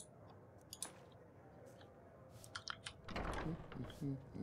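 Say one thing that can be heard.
A wooden door closes with a thud.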